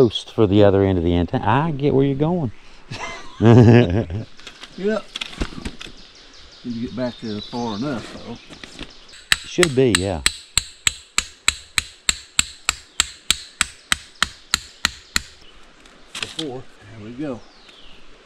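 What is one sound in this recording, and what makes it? A man talks casually nearby, outdoors.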